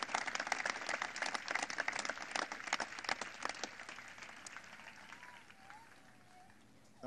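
A crowd applauds outdoors and the clapping fades away.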